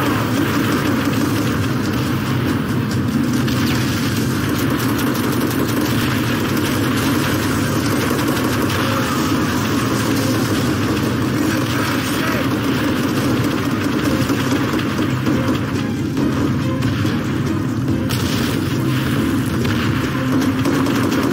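Rifles and machine guns fire in rapid bursts.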